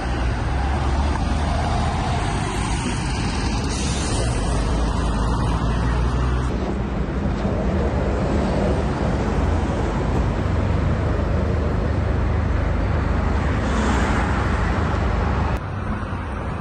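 A tram rumbles along the tracks nearby.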